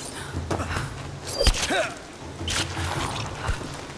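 A young woman grunts with effort.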